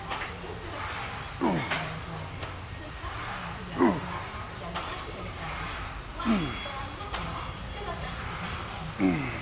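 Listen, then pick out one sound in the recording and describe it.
Metal weights clink as a barbell is lifted.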